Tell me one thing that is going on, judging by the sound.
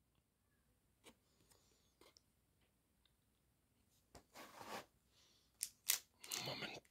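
Trading cards slide and rustle against each other in a person's hands.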